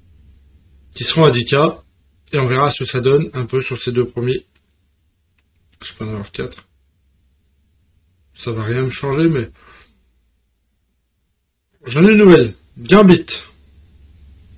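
A man speaks with animation into a microphone, in short bursts.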